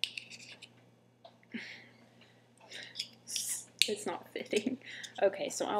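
Small plastic parts click and rustle in a young woman's hands.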